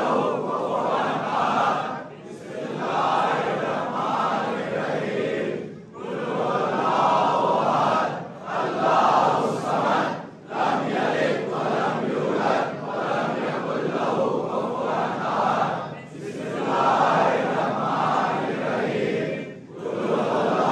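Many men beat their chests in rhythm.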